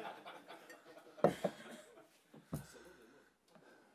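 A middle-aged man laughs heartily into a microphone.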